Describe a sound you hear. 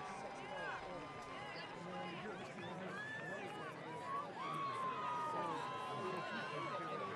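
A large crowd chatters and calls out across an open outdoor stadium.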